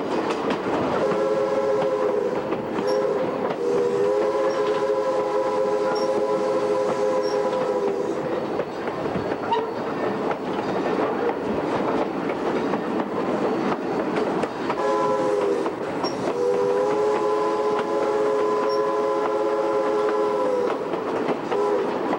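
A locomotive horn blows in long blasts.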